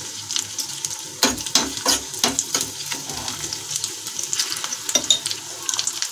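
A metal spoon scrapes against a pan.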